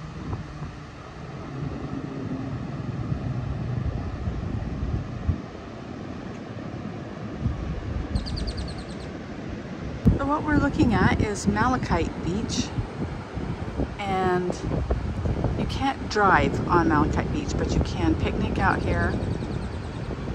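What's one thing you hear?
Wind blows hard and rumbles against the microphone outdoors.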